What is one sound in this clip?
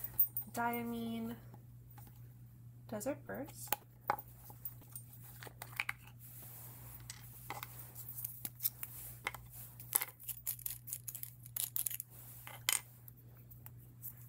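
Small objects click and tap on a wooden surface.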